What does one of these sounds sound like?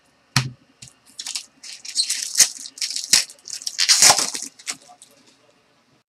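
Foil wrappers crinkle and tear.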